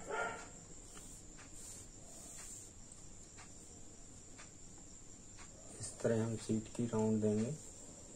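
Chalk scratches lightly on cloth.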